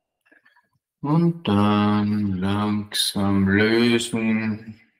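A man speaks calmly and slowly close by.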